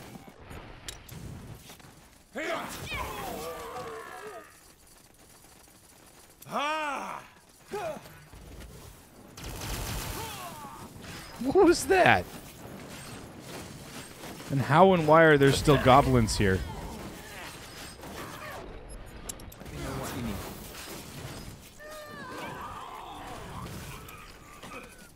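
Fiery spells burst and crackle.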